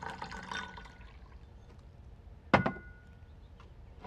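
Tea pours into a small cup.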